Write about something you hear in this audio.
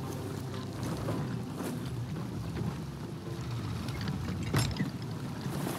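A wooden ship's wheel creaks as it turns.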